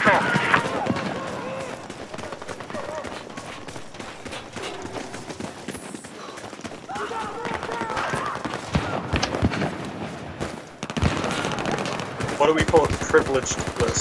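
Footsteps crunch quickly over gravel.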